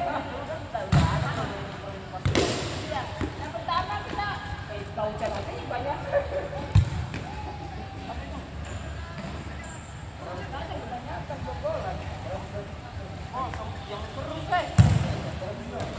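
A ball is kicked hard and thuds in a large echoing hall.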